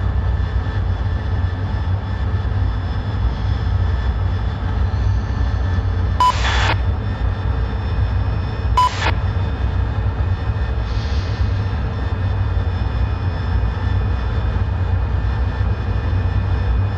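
A jet engine roars steadily with a low rumble.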